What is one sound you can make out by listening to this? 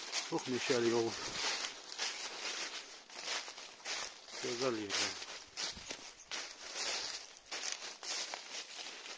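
Wind gusts through bare branches outdoors.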